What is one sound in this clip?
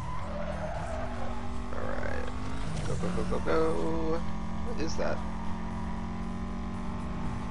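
A racing car engine roars steadily at high speed.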